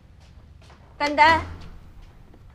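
A young woman answers briefly.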